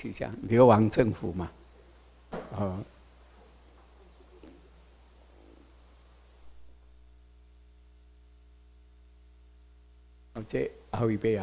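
An elderly man speaks through a microphone in a hall, with pauses between phrases.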